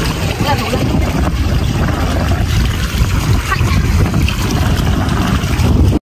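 Wet seaweed squelches as it is lifted from shallow water.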